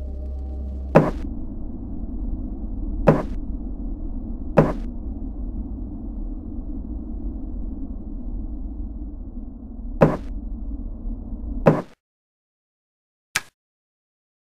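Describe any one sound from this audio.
A sharp click sounds with each menu selection.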